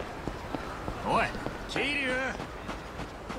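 A man calls out loudly from nearby.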